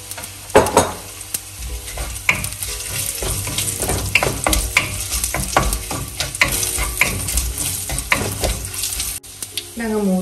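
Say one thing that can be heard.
A wooden spoon scrapes and taps against a pan.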